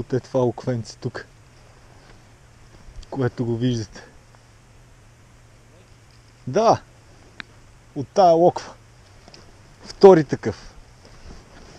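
A man speaks close by in short, animated bursts.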